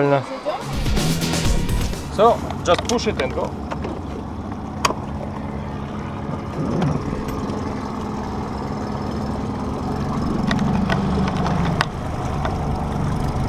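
A small boat motor hums steadily over the water.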